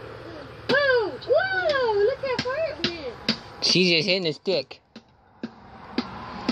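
A plastic bat hits a ball with a hollow tap.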